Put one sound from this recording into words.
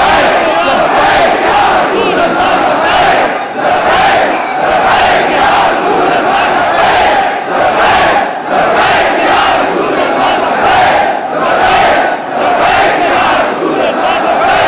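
A large crowd chants loudly in rhythm, echoing in a big hall.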